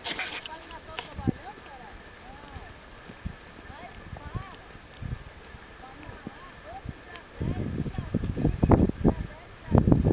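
Horse hooves thud softly on grassy ground at a walk.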